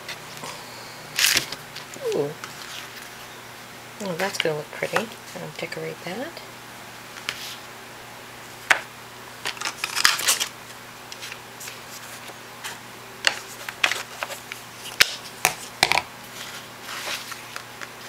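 Paper rustles and crinkles as it is lifted and handled.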